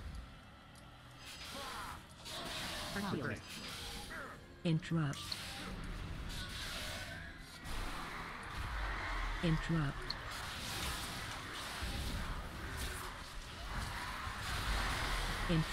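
Magic spells whoosh and crackle.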